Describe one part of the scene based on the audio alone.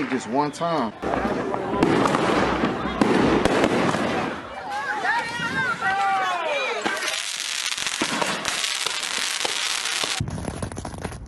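Fireworks crackle and bang loudly outdoors.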